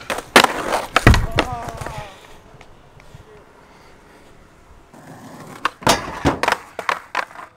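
A skateboard snaps and lands with sharp clacks.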